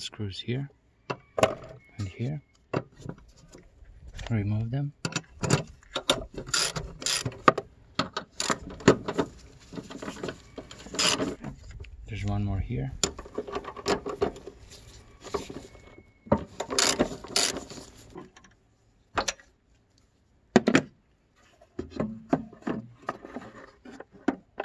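A plastic cover rattles and knocks as it is lifted.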